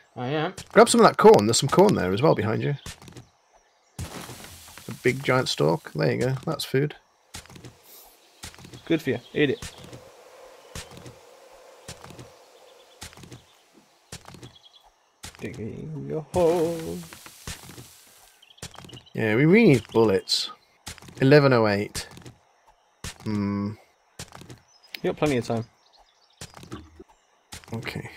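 A pickaxe strikes packed dirt in repeated dull thuds.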